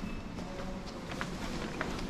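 Footsteps of a man walk across a hard floor nearby.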